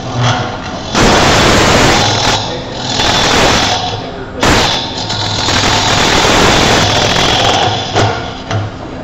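A gouge scrapes and cuts into spinning wood in loud rough bursts.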